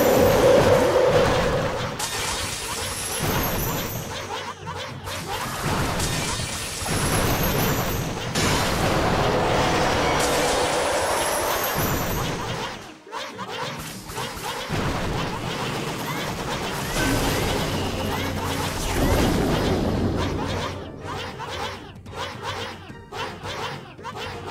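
Video game battle sounds of blasts and crashes play throughout.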